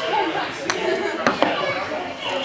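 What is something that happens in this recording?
A golf putter taps a ball.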